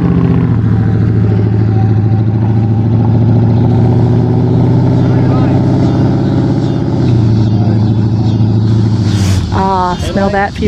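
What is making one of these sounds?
A car engine roars loudly as the car accelerates away.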